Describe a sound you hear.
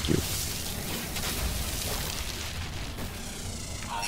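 A laser tool hums and crackles steadily.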